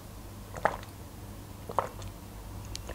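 A woman gulps water close to a microphone.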